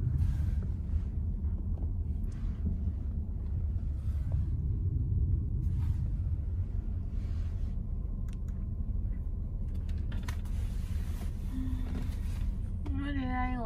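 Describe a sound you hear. A car engine hums low and steady inside a moving car.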